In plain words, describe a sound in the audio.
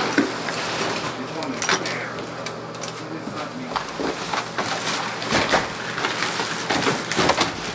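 Gloved hands rustle and crumple through piles of paper and cardboard.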